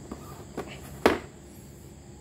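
A plastic induction cooktop is set down on a tiled floor with a thud.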